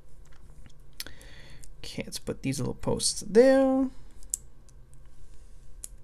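Plastic bricks click as they are pressed together.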